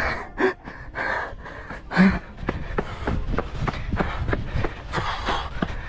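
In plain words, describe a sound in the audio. Footsteps scuff on stone steps.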